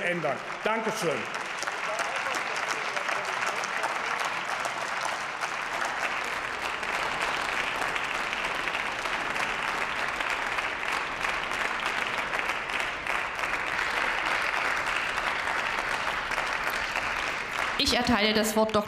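A crowd applauds steadily in a large hall.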